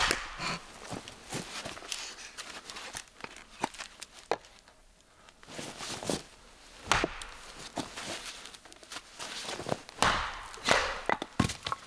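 Split wood pieces clatter apart.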